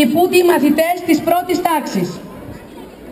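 A woman speaks loudly through a loudspeaker outdoors.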